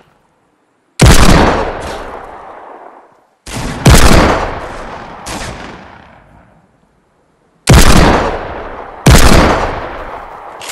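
A heavy handgun fires single loud shots, each with a long echoing tail.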